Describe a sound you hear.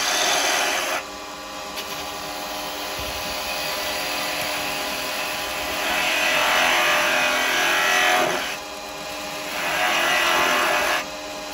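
A lathe hums steadily.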